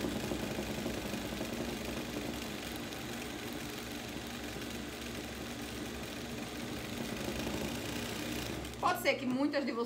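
A sewing machine hums steadily as it stitches.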